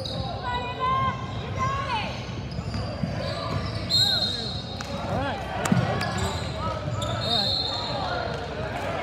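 Sneakers squeak on a hardwood floor in a large echoing gym.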